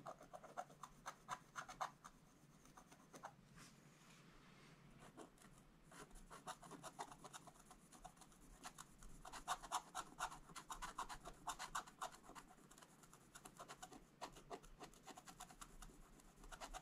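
A stylus scratches quickly across stiff card in short, rapid strokes.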